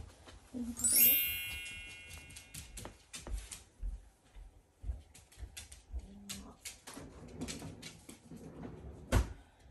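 A dog's claws tap on a wooden floor.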